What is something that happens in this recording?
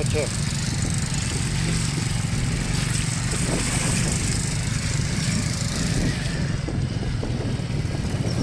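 Tyres roll over a wet dirt road.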